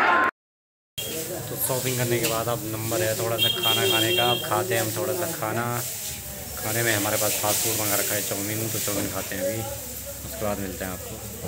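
A young man speaks calmly, close to the microphone.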